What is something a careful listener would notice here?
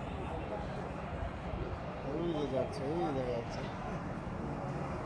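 A train rumbles as it approaches.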